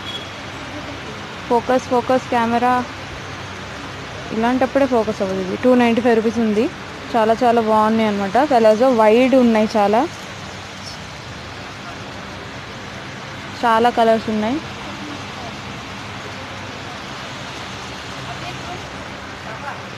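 Cloth rustles softly as hands handle folded garments.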